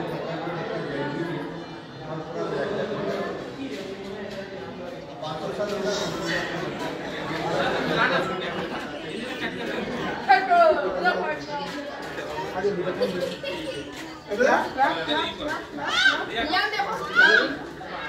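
Several men and women chat nearby in an echoing stone hall.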